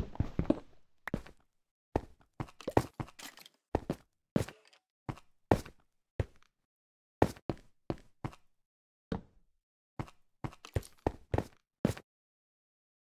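Footsteps tap on stone at a steady walking pace.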